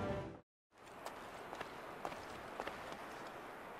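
Footsteps tap on a stone step.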